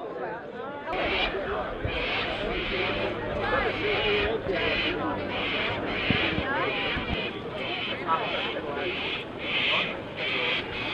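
A crowd of adults chatters outdoors.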